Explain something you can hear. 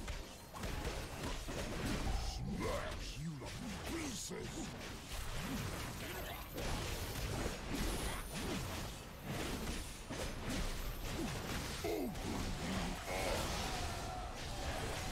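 Sword blows land again and again.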